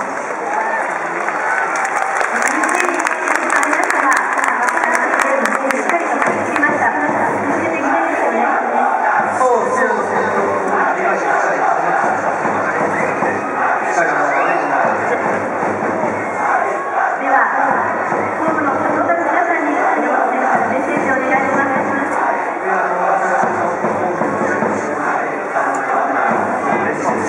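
A young man speaks into a microphone, heard over stadium loudspeakers.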